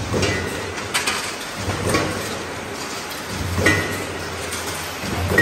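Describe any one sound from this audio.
Metal tubes clatter and clank as they are handled.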